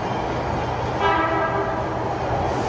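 A train sounds a short horn as it approaches.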